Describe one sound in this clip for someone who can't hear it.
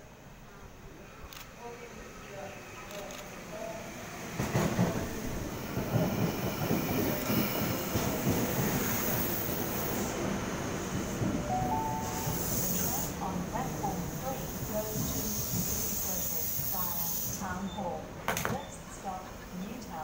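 A train rumbles into a station, growing louder as it nears.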